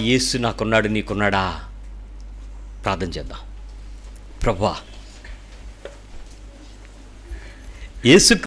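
A middle-aged man speaks emotionally into a microphone, pausing between phrases.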